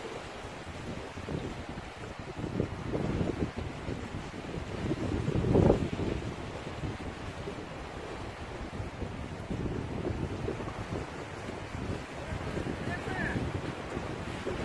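Sea waves wash against rocks.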